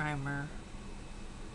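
An older woman speaks briefly and closely, heard through a microphone.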